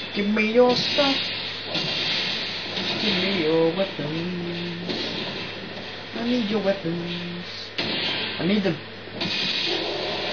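Metal blades clash and clang in a sword fight.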